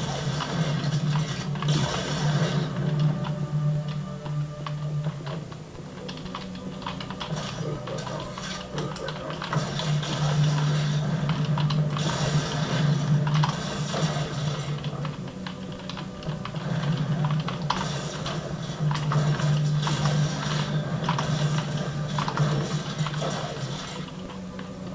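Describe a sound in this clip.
Keyboard keys click under quick typing.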